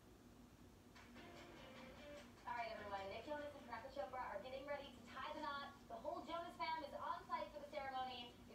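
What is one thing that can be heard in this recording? A television plays a programme in the room.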